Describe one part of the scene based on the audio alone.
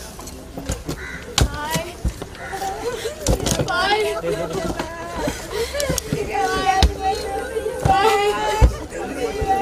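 A crowd of men and women sings together nearby.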